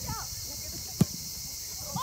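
A soccer ball is kicked hard.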